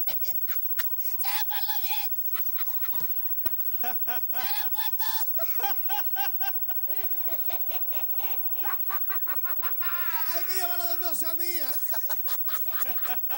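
A man sings energetically into a microphone.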